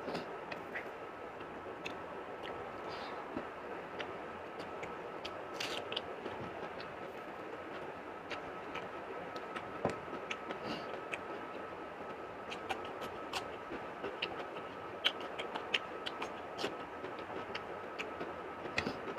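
Fingers squish and mix rice and curry on a plate.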